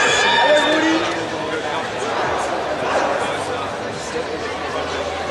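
A crowd of spectators cheers and shouts nearby.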